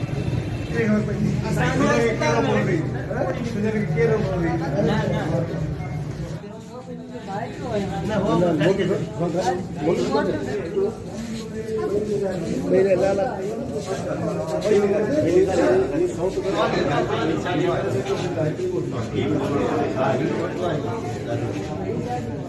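A crowd of men talk loudly and excitedly close by.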